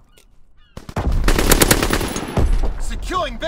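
A rifle shot rings out loudly and echoes.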